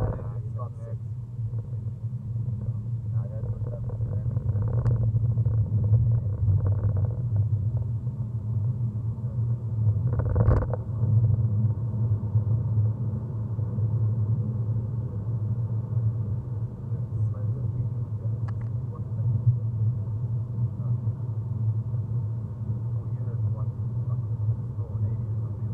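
A man talks briefly.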